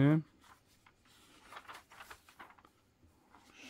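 Paper pages rustle as a comic book's page is turned.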